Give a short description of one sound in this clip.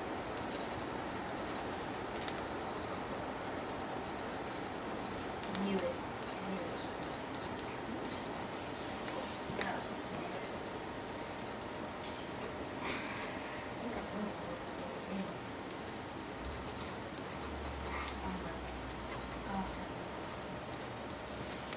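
A pen scratches softly on paper.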